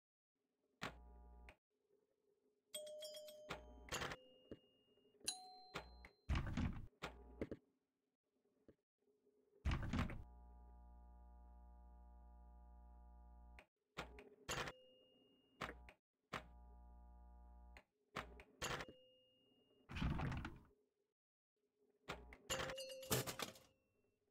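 Electronic chimes and buzzes ring out as the score goes up.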